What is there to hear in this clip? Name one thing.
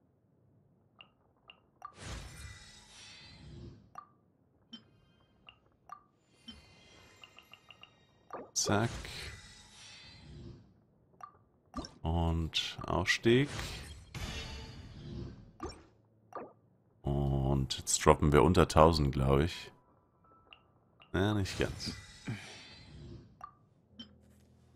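Short soft clicks sound as menu buttons are pressed.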